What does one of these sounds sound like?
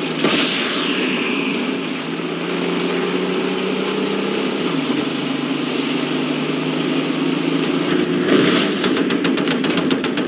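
A tank engine rumbles as it drives.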